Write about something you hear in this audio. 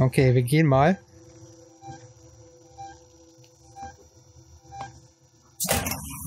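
An electronic tracker beeps at a steady pace.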